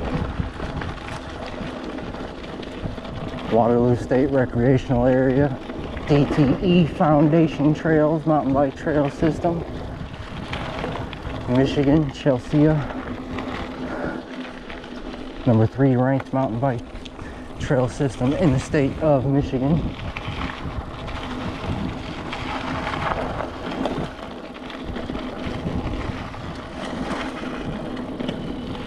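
A bicycle rattles over bumps.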